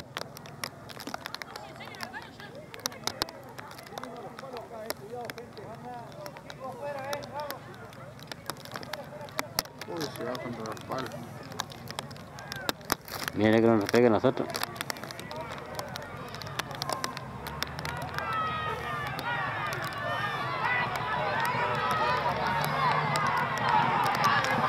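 Horses gallop on a dirt track, hooves thudding.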